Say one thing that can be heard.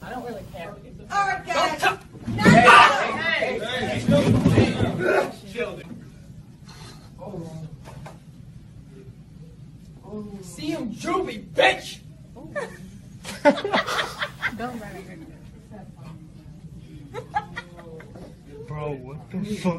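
Teenagers shout and yell in a room during a scuffle.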